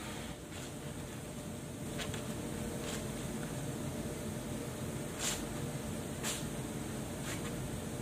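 Wet clothes are scrubbed and splash in water.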